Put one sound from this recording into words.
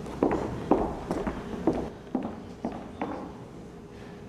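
Footsteps knock on a wooden stage.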